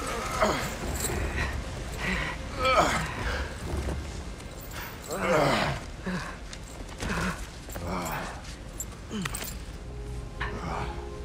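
A metal chain rattles and clinks.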